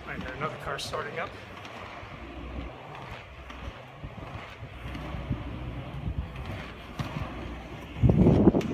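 Inline skate wheels roll and rumble on smooth concrete.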